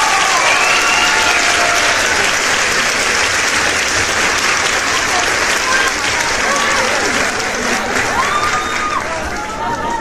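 A crowd of young women cheers and screams loudly indoors.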